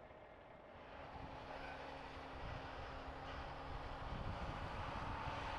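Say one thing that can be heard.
A diesel tractor drives across soft ground.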